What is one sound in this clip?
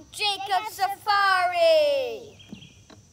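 A young child shouts excitedly.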